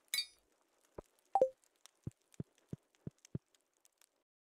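Footsteps tap lightly on a wooden floor.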